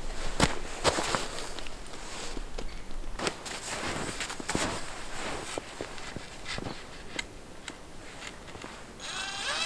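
Boots crunch through deep snow.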